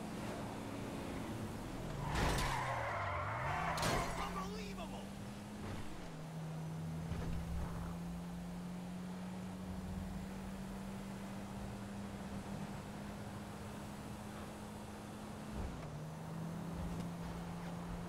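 A car engine hums steadily and shifts pitch as it drives.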